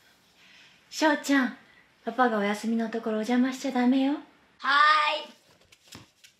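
A young woman speaks softly and gently nearby.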